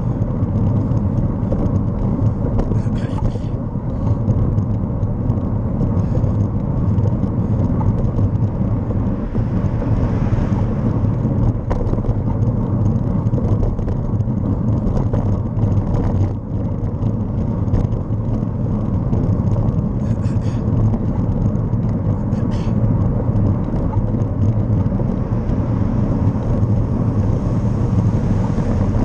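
An engine hums steadily as a vehicle drives along a road.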